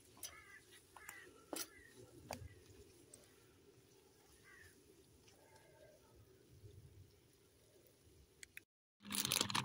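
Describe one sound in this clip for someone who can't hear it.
Food sizzles and crackles in a pan over a fire.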